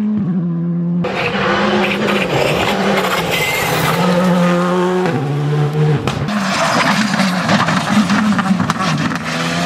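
Tyres crunch and spray loose gravel.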